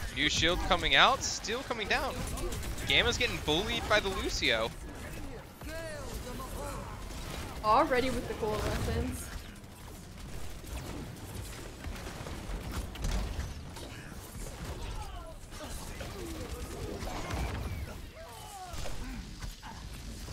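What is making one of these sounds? Video game gunfire and blasts crackle and boom.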